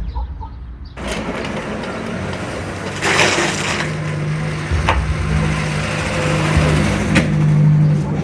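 A car engine runs with a steady low hum.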